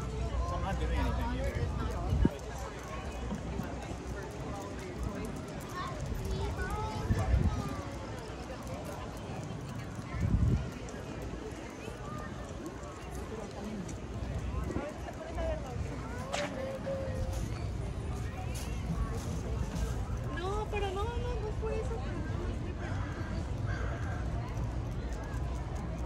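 Footsteps tap on a wooden boardwalk.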